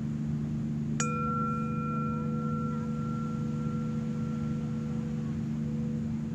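A singing bowl is struck and rings out.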